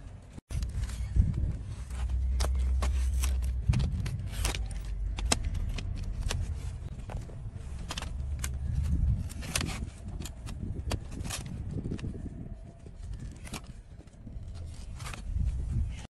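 Hoof nippers snip and crunch through a horse's hoof.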